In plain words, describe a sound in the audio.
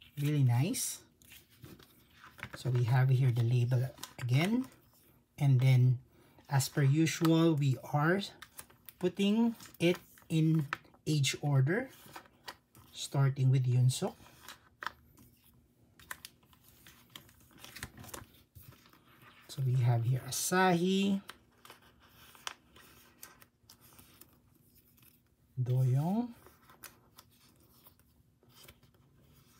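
Plastic sleeves crinkle softly.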